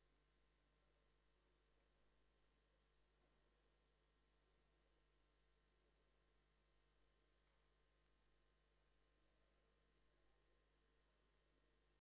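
A man talks faintly, far off in a large room.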